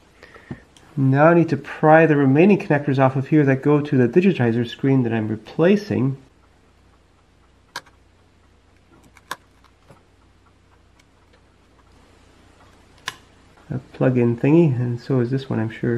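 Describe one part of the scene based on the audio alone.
A small metal tool clicks and taps against a tablet's parts.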